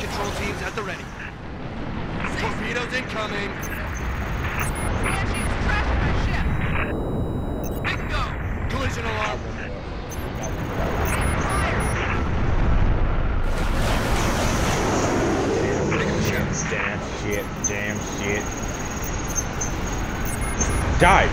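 Spaceship engines roar steadily.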